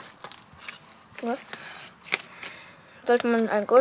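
A hand rustles and crumbles dry soil close by.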